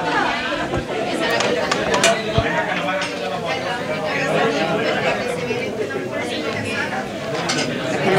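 Utensils clink against dishes.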